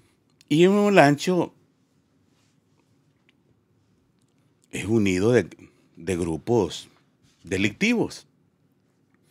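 A middle-aged man speaks emphatically into a close microphone, in short bursts with pauses.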